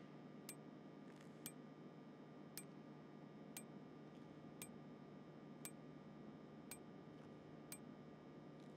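A game menu ticks softly with each scroll step.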